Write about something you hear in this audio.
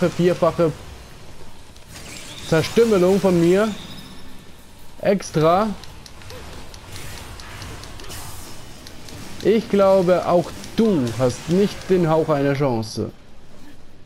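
Sword blows slash and clash in quick succession.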